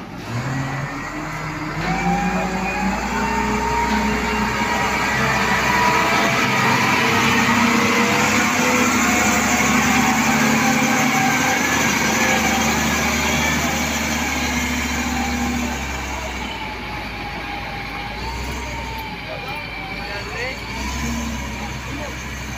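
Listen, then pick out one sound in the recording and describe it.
A large loader's diesel engine rumbles loudly close by, then fades as the machine drives away.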